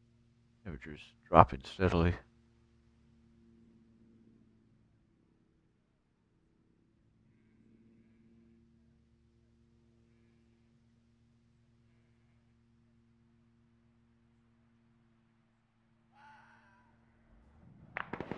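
A helicopter hums steadily in the distance.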